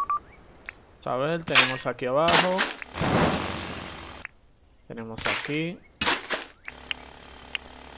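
A shovel digs into the ground.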